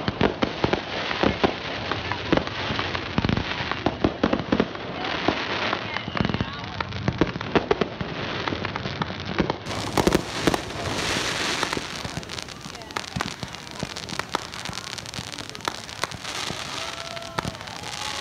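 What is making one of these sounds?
Fireworks crackle and sizzle in a steady hiss.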